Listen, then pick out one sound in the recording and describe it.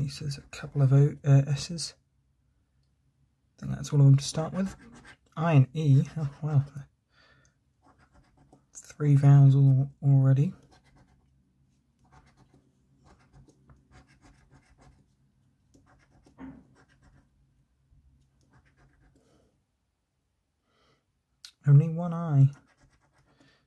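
A coin scratches softly across a card.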